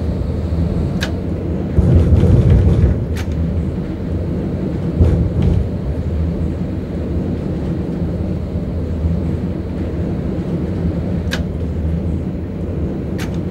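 Tram wheels click over rail joints.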